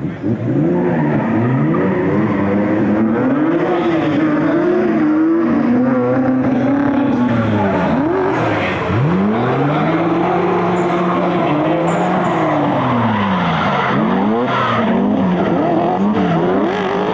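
Tyres screech on asphalt as cars slide.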